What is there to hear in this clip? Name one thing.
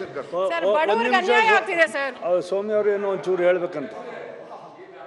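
A woman speaks forcefully into a microphone in a large echoing hall.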